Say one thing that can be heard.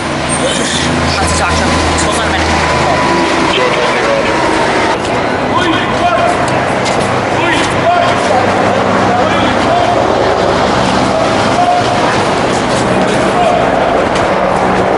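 A crowd of men and women chants and talks loudly outdoors.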